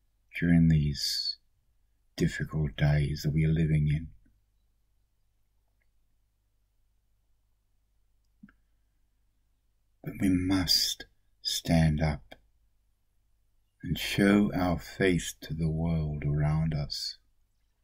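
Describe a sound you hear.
An elderly man speaks calmly and close to a microphone, with pauses.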